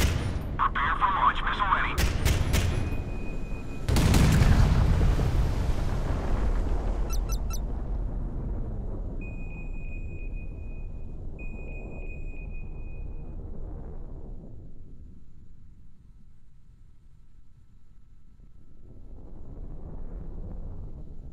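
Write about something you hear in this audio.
A jet aircraft roars steadily, fading and then swelling again.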